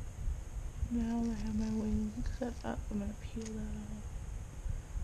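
A young woman speaks briefly and calmly, close by.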